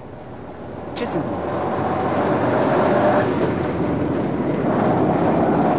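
A bus roars past with a rush of noise.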